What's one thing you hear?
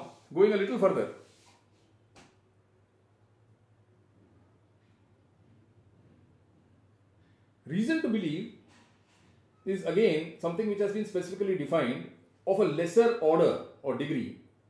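An elderly man speaks close by, with pauses and growing emphasis.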